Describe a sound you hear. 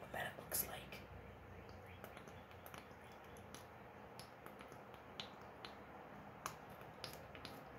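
A glass dropper clicks against a small bottle.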